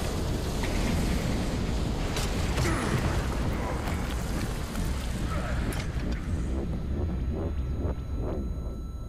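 An explosion booms with a deep rumble that slowly dies away.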